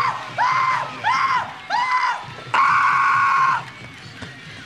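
A young man shouts loudly close by.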